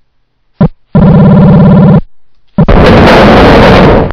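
A metal door slides open in a retro video game.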